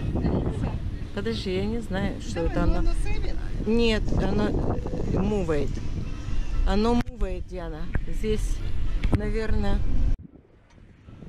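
An older woman talks calmly close by.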